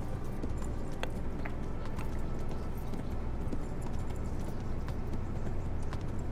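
A horse's hooves clop steadily on a dirt track.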